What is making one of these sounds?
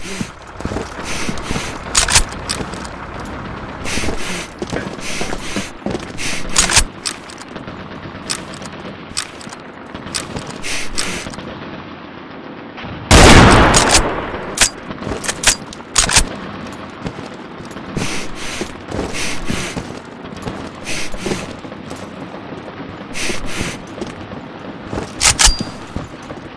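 Gunshots crack sharply, one after another.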